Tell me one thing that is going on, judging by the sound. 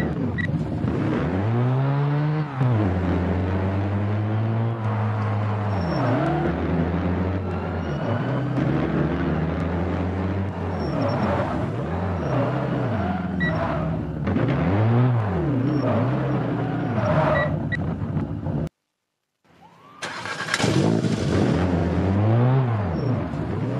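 A car engine revs up and down as the car drives.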